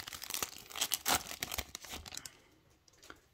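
A foil wrapper crinkles and tears as a pack is opened.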